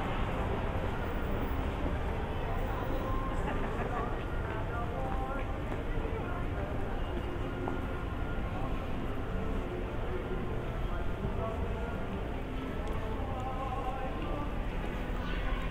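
Traffic hums steadily along a busy street outdoors.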